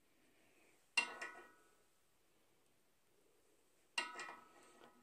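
Metal parts clink and tap as they are handled.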